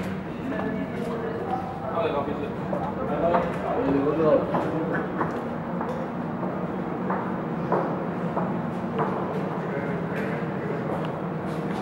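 Footsteps echo through a long vaulted corridor.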